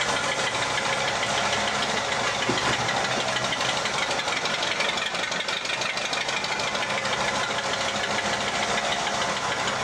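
A small model locomotive hums and clicks softly as it rolls slowly along the track.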